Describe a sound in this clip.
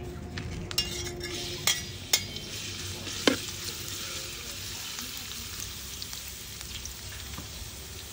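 Chopped shallots and garlic sizzle in hot oil.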